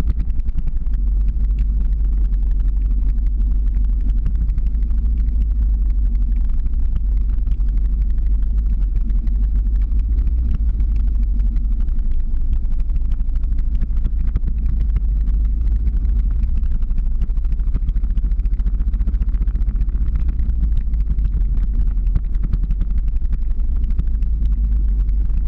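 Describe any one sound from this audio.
Wind rumbles loudly against the microphone throughout.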